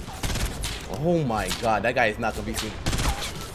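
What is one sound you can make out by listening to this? A young man talks through a microphone.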